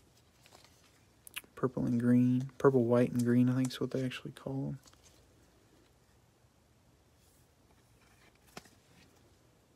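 Plastic card sleeves rustle and slide against each other.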